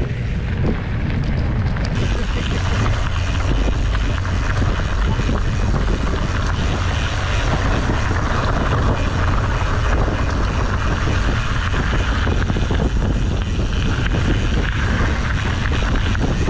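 Bicycle tyres crunch over a gravel track.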